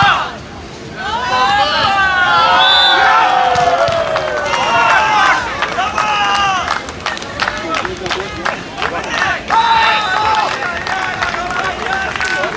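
A crowd outdoors cheers and shouts loudly.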